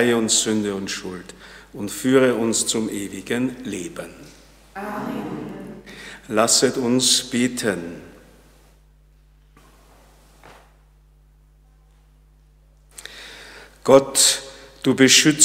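A man speaks calmly into a microphone in a room with a slight echo.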